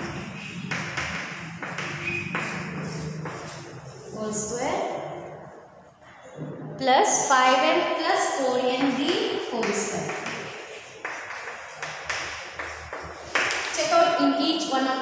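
A woman speaks clearly and steadily, explaining in an echoing room.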